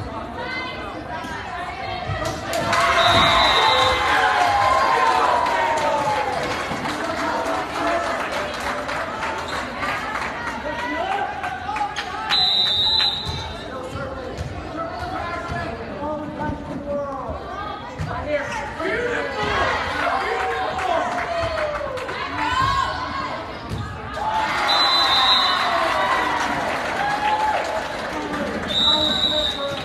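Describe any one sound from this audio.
A crowd of spectators cheers and shouts loudly in an echoing gym.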